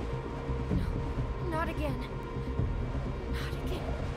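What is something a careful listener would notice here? A young girl speaks softly and sadly, close by.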